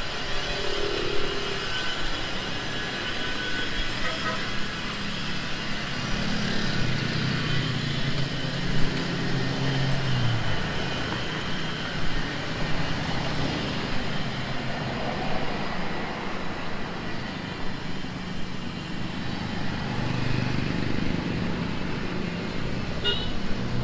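Traffic hums steadily along a street outdoors at night.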